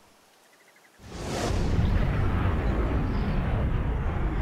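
An explosion roars with a deep, rumbling blast.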